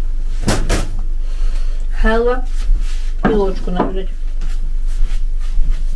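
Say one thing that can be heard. A plate clinks down onto a table.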